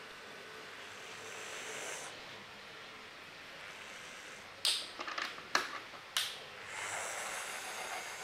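A small model locomotive's motor whirs as it runs along the track.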